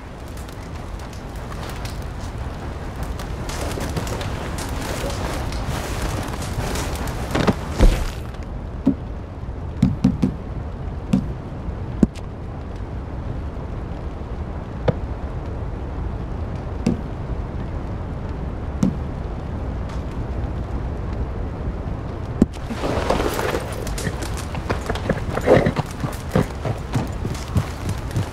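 A campfire crackles and pops outdoors.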